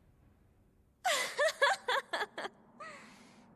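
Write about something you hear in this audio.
A young woman laughs loudly and giggles.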